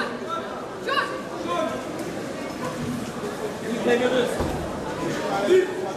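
Men talk nearby.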